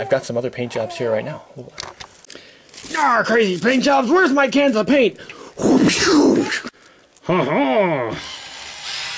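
A man speaks with animation close to the microphone.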